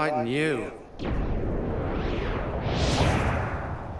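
A dark rushing whoosh swells and roars.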